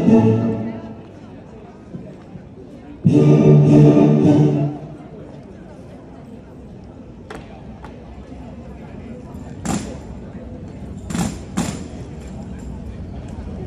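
A crowd murmurs in the open air.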